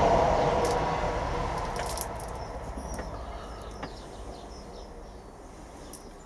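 A gloved hand presses down soil in a plastic cup.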